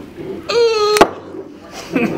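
A cork pops out of a bottle.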